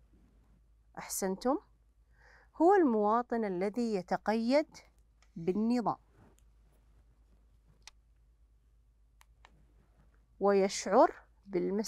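A woman speaks calmly through a microphone, in short phrases with pauses.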